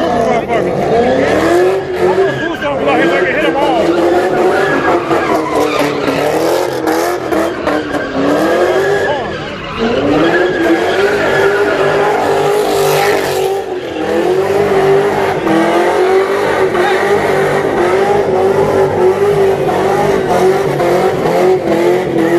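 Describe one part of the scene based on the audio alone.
A car engine revs hard and roars close by.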